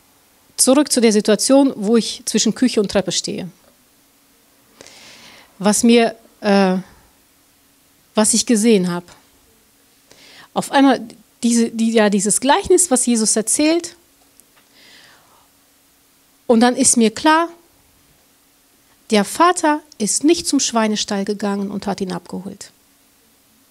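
A middle-aged woman speaks calmly into a microphone, heard through a loudspeaker in a hall.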